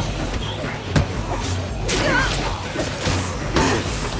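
Blows thud in a close struggle.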